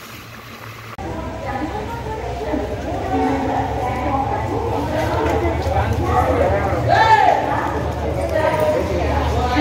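A crowd chatters on a station platform.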